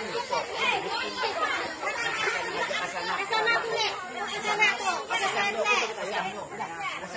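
Several men and women talk excitedly over one another close by, outdoors.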